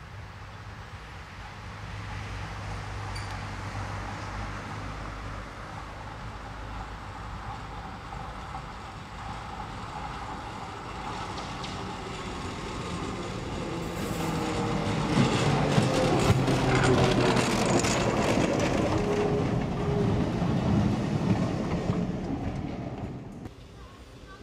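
A tram hums as it approaches and rattles past close by.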